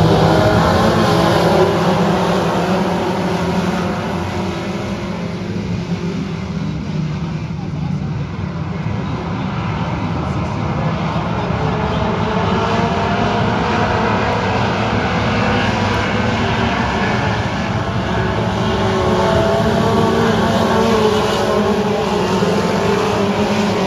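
Race car engines rise and fall in pitch as the cars accelerate.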